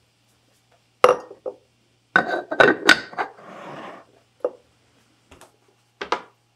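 Hands tap and knock on a wooden board.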